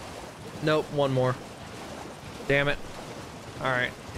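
A horse gallops, splashing through shallow water.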